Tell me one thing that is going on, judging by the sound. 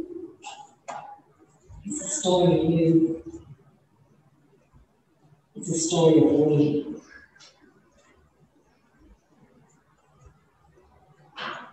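A woman speaks slowly and clearly into a microphone, echoing in a large hall.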